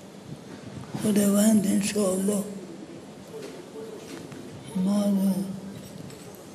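An elderly man speaks slowly and calmly into a microphone, heard through a loudspeaker.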